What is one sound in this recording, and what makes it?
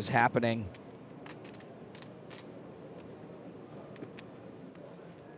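Poker chips click as they are stacked and shuffled.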